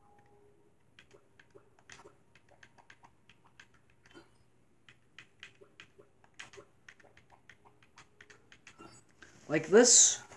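A video game plays soft clicking sounds through a television speaker.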